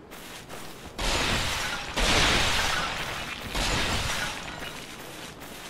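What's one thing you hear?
Clay pots smash and shatter, with shards clattering.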